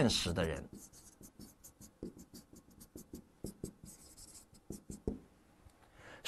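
A marker squeaks and taps on a board.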